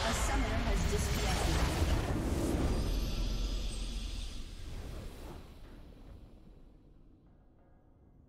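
A triumphant victory fanfare swells and fades.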